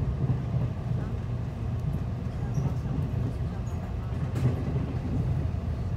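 A vehicle rumbles steadily along a road, heard from inside.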